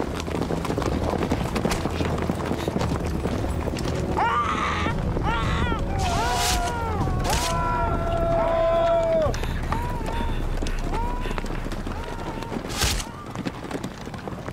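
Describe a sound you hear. Horses gallop heavily over hard ground.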